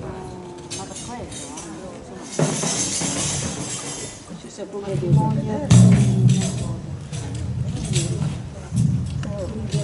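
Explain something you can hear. A tambourine is shaken and rattles.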